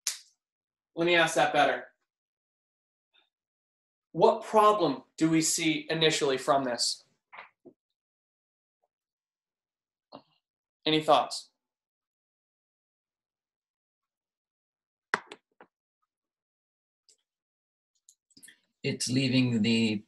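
A young man speaks calmly in short phrases, close by.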